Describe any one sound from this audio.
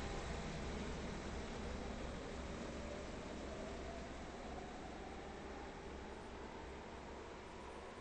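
A second train approaches with a rising motor whine.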